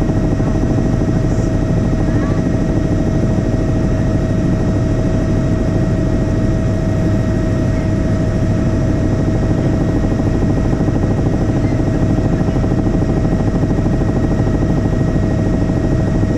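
A helicopter's engine and rotor roar steadily and loudly.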